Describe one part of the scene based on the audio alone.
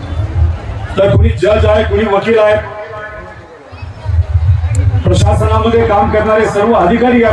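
A man speaks loudly through a microphone and loudspeakers.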